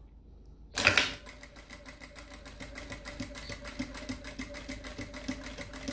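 A sewing machine runs with a steady, fast whirring hum.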